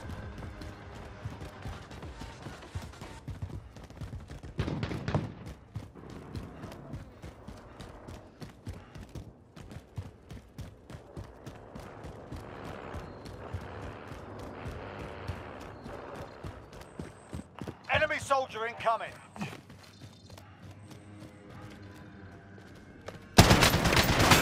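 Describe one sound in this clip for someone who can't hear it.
Quick footsteps run over a hard floor.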